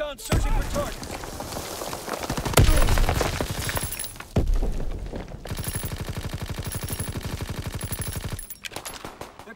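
A submachine gun fires in rapid bursts at close range.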